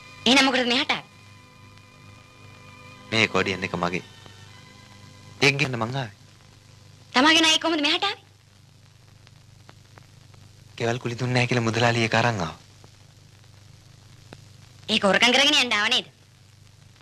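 A woman sings loudly in short phrases.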